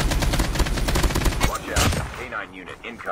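Rapid gunshots fire in a video game.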